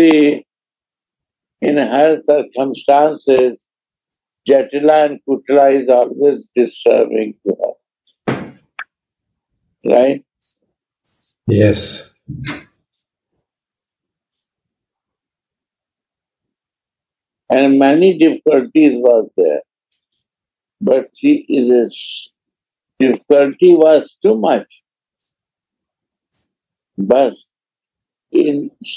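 A middle-aged man speaks calmly over an online call, in short bursts with pauses.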